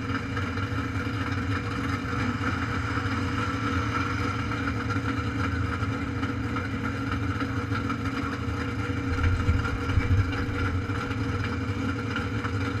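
Wind rushes steadily past close by.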